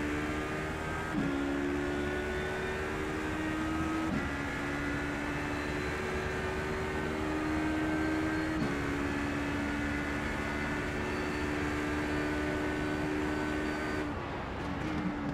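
A racing car engine revs high and climbs steadily, dropping briefly with each gear shift.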